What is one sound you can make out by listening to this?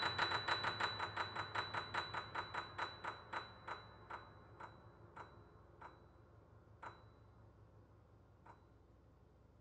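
A piano plays a quick repeated note that slows down and grows softer.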